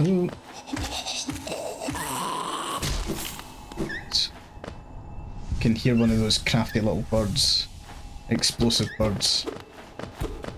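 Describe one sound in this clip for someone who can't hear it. Game sound effects chime and whoosh.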